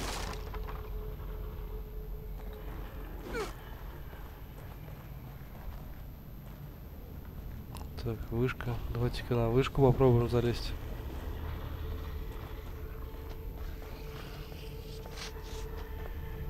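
Footsteps crunch slowly over rough ground.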